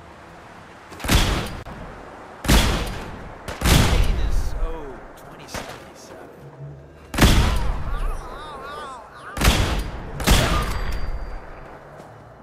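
Heavy gunshots boom loudly, one after another.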